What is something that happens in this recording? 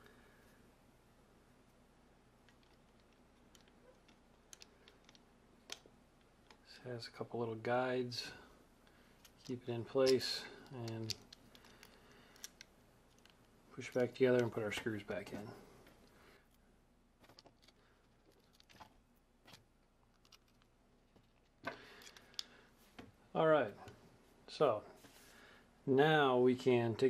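Small plastic parts click and tap as a game controller is handled.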